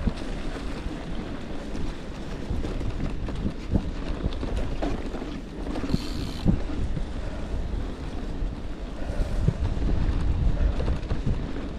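Bicycle tyres crunch and rumble over a rough dirt track.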